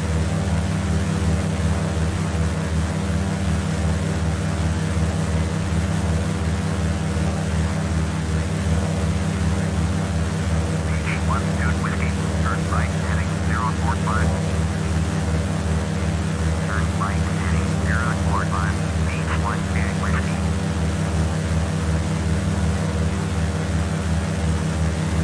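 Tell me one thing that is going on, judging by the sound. Twin propeller engines drone steadily with a low, throbbing hum.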